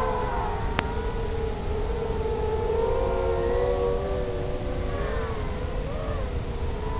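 Wind rushes past the drone.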